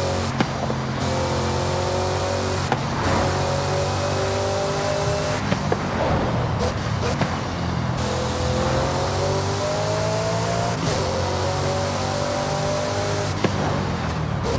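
A sports car engine roars at high speed, climbing in pitch and dropping with each gear change.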